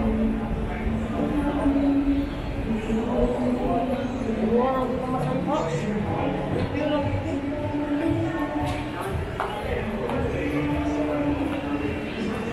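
A crowd of men and women murmurs and chatters in a large echoing hall.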